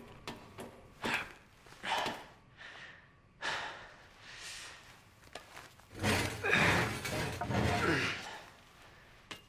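A man grunts and strains with effort close by.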